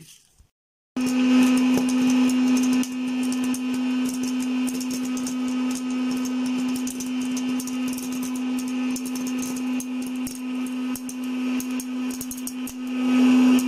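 A popcorn machine hums steadily with a loud whir.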